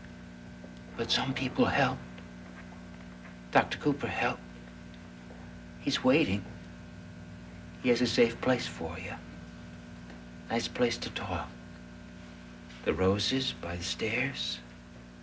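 A young man speaks calmly in short bursts, close by.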